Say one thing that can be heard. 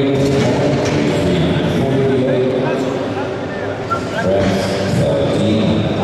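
Metal weight plates clank as they are slid on and off a bar.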